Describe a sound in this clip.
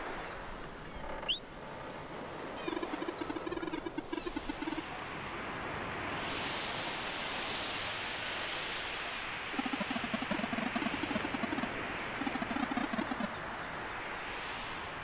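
Waves wash and roll steadily across open water.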